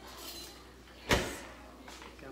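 An oven door bangs shut.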